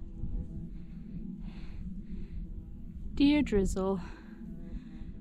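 A young woman speaks close up, groaning and exclaiming with animation.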